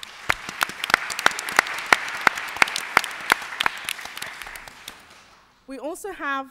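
An audience applauds, then the clapping fades away.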